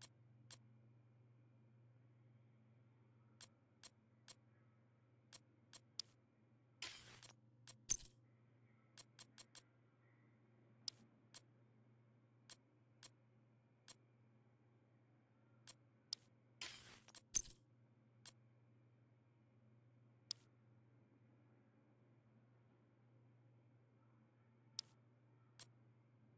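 Short, sharp menu clicks tick now and then.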